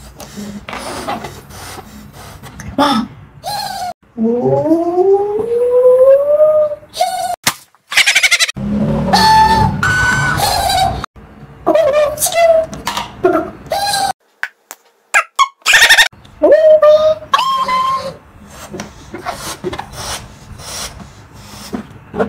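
A man blows into a balloon.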